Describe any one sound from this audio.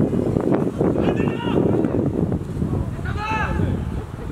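Young male players shout to each other far off across an open field.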